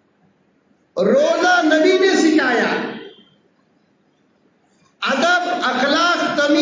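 A man chants loudly into a microphone, in drawn-out phrases with pauses between.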